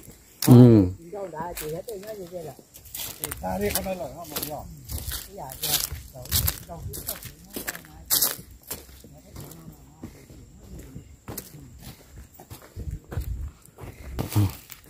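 Boots squelch through wet mud.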